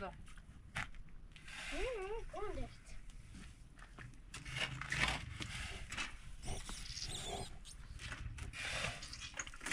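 A metal shovel scrapes and splashes through wet mud on a hard floor.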